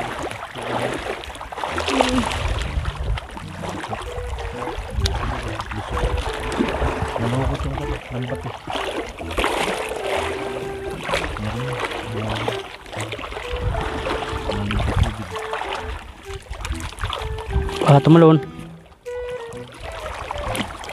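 Water splashes and sloshes as people wade through shallow water.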